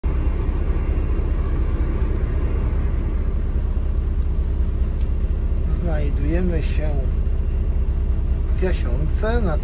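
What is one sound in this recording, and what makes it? A bus engine idles with a steady low rumble.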